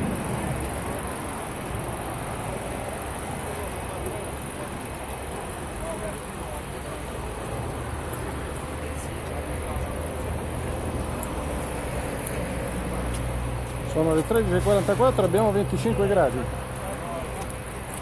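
A crowd murmurs and talks outdoors.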